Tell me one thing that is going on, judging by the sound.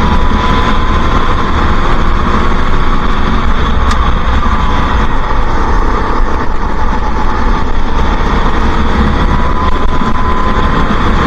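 A kart engine buzzes loudly at high revs close by.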